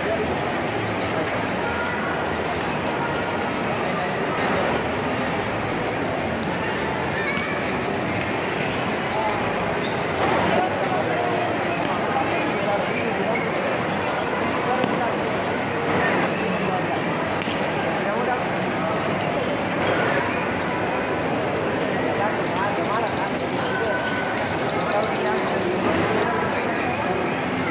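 A crowd murmurs and chatters steadily in a large echoing hall.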